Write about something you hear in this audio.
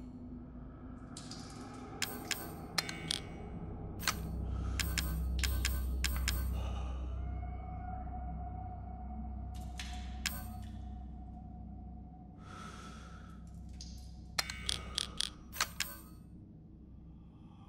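Short game menu clicks sound as items are selected.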